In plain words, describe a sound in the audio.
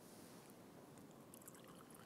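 Liquid trickles softly into a metal cup.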